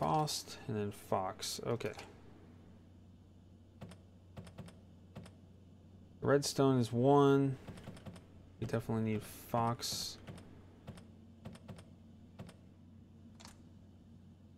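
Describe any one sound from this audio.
Mechanical letter switches click into place.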